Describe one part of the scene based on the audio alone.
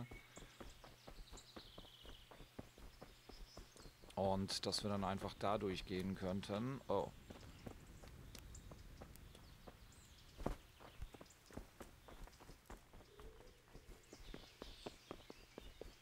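Footsteps crunch steadily on a dirt and cobbled path.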